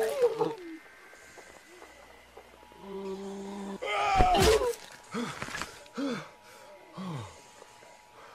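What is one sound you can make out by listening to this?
A man shouts in anguish.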